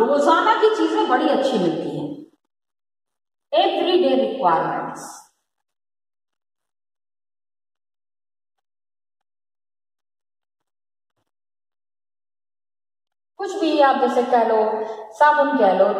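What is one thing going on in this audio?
A woman speaks calmly close by, like a teacher explaining.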